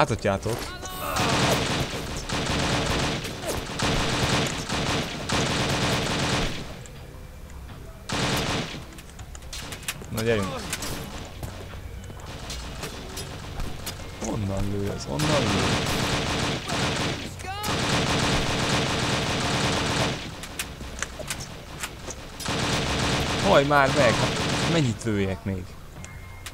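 A submachine gun fires rapid, loud bursts.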